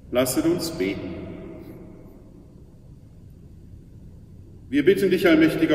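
An elderly man speaks slowly and solemnly into a microphone in an echoing hall.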